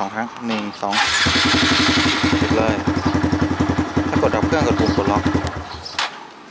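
A small motorcycle engine idles with a rapid, steady putter.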